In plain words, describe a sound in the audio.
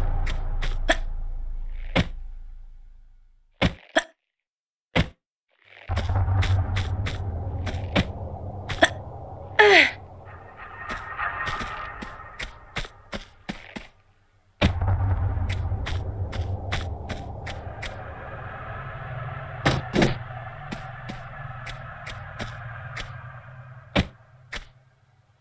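Footsteps run and thud on a hard floor.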